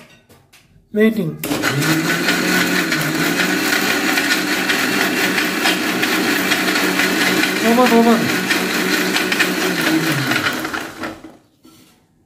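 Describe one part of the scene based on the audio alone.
A blender motor whirs loudly, churning liquid.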